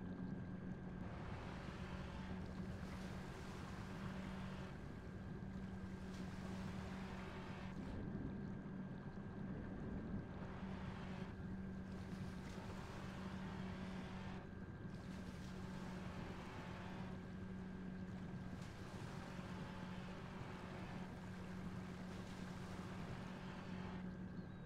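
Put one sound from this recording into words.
Waves splash and wash around a small craft on the surface.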